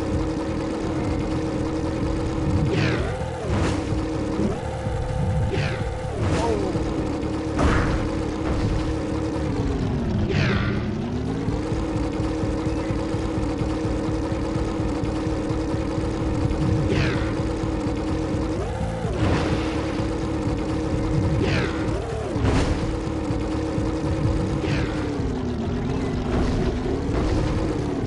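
A propeller engine hums steadily, rising and dipping in pitch.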